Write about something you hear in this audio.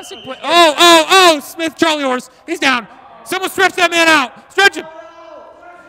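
Young men shout loudly in a large echoing hall.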